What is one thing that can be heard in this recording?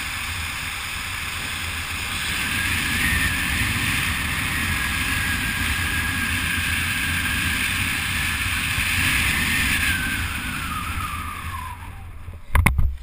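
Wind rushes loudly past during a parachute descent and then dies down.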